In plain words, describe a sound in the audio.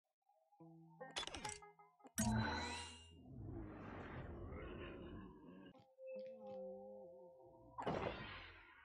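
Short electronic game chimes and jingles play.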